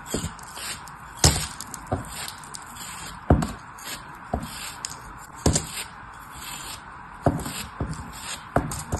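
A blade slices through crumbly sand with soft crunching scrapes.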